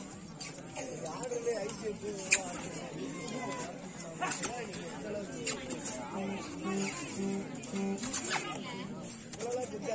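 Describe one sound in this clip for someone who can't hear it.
Players' feet thud and scuff on a court during a tussle.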